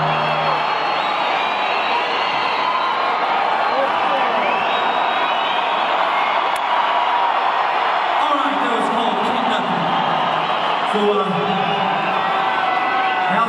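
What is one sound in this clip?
An electric guitar plays loudly through amplifiers.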